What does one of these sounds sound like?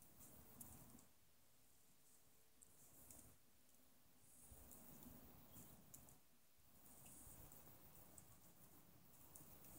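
A wood fire crackles and pops.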